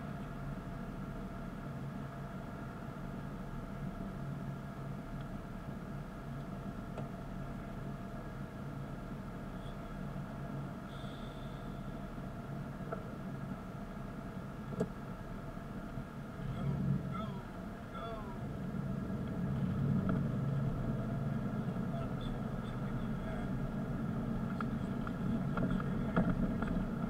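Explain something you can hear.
A car engine hums steadily from inside, idling and then pulling away.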